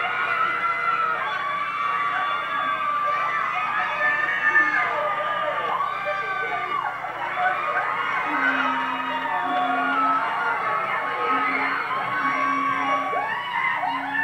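A crowd of young people chatters and shouts nearby.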